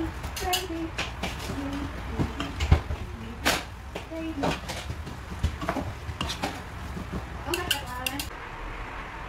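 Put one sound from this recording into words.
A metal utensil clinks and scrapes against a pan.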